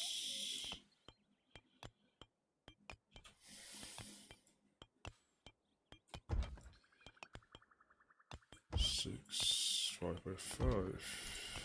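Short interface clicks tick as building blocks are placed.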